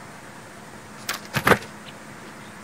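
A small bird's wings flutter briefly as it takes off.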